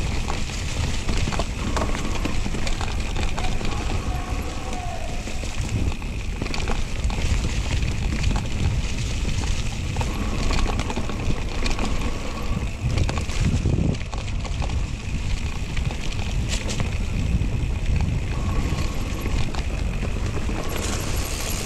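Wind rumbles across a microphone outdoors.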